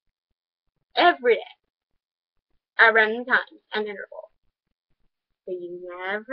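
A teenage girl talks casually into a nearby microphone, pausing between phrases.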